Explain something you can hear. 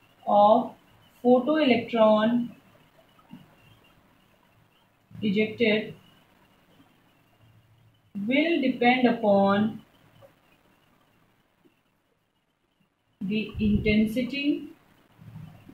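A woman speaks calmly, explaining in short phrases close by.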